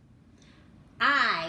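A third, older woman speaks, close up.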